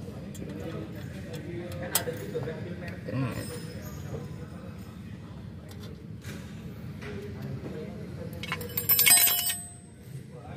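Metal brake parts clink and rattle.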